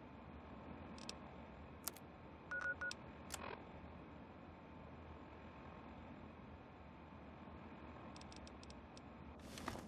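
Electronic clicks and beeps sound as a handheld device's menu is switched.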